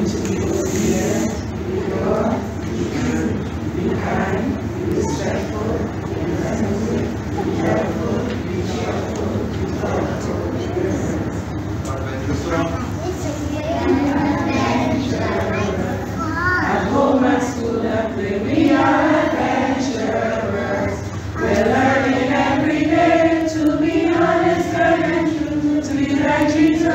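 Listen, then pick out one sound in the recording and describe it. A group of girls and women sing together in an echoing hall.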